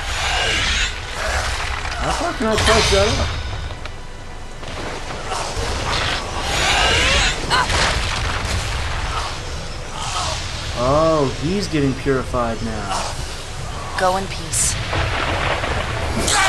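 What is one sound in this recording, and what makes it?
Magical blasts and whooshes burst in a video game.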